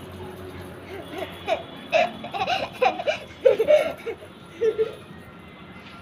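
A young girl laughs nearby.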